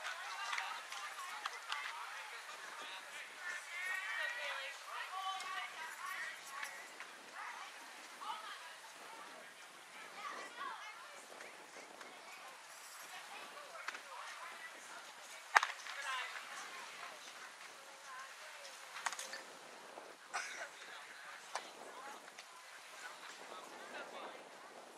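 Young players call out and chatter across an open field.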